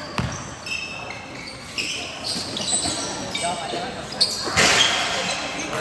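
A basketball thuds as it bounces and clangs off the rim.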